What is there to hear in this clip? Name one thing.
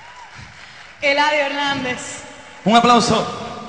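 A woman sings powerfully through a microphone in a large hall.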